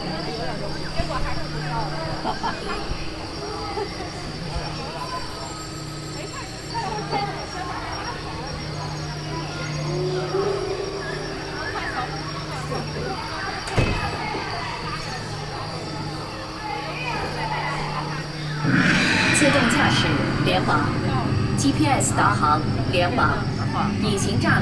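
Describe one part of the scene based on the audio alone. A large audience murmurs and chatters in an echoing hall.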